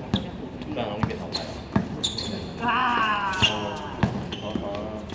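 A basketball bounces with sharp thuds.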